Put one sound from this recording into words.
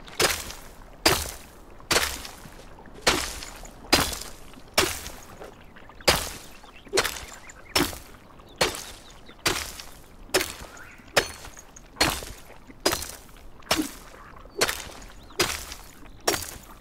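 A pickaxe strikes rock in a steady rhythm, each blow a sharp crack.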